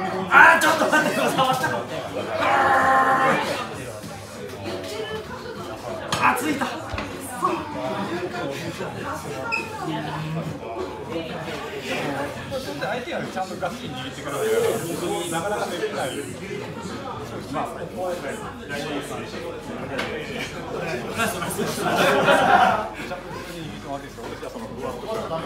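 A crowd of young men chatter and call out in an echoing room.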